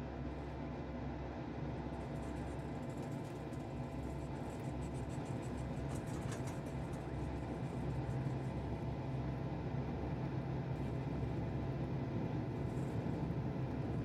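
A jet engine hums steadily as an aircraft taxis.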